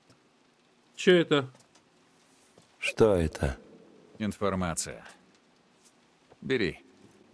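A man speaks calmly and quietly, close by.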